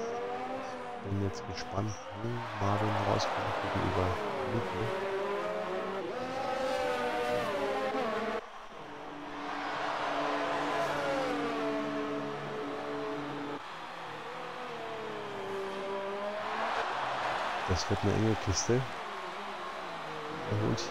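Racing car engines whine and rise and fall in pitch as they speed past.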